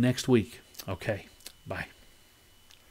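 An older man speaks calmly and close into a microphone.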